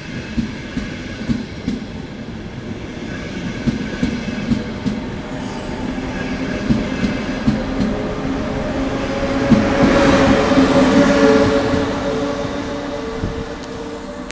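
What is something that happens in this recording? A train rushes past close by with rhythmic wheel clatter.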